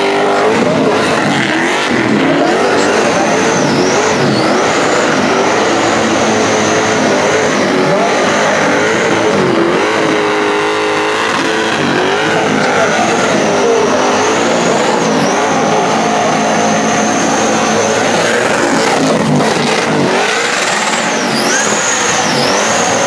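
A Holden Commodore engine revs hard during a burnout.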